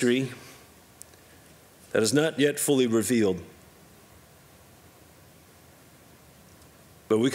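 A man speaks calmly into a microphone, in short phrases with pauses.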